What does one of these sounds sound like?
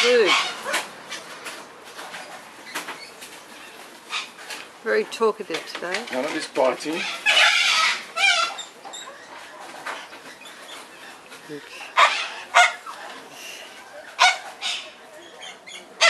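A cockatoo flaps its wings.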